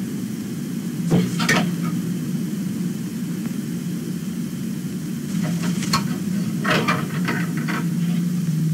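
Clothes hangers rattle and fabric rustles.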